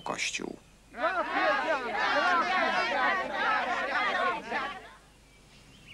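A group of women sing together loudly outdoors.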